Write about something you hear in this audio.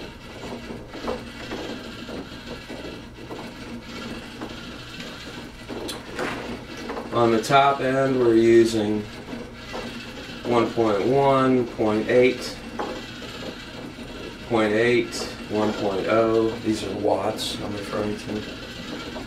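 A small spinning device whirs softly.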